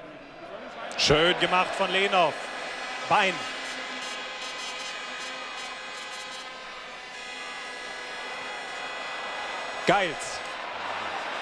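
A large crowd roars and cheers in an open stadium.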